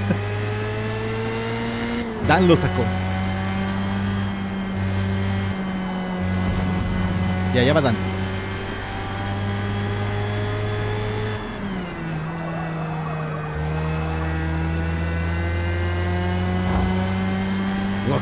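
A racing car engine drones steadily, its pitch rising and falling with the gears.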